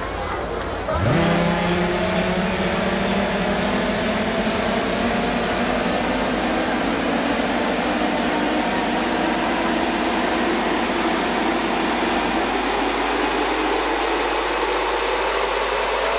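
Loud electronic music plays through speakers in a large echoing hall.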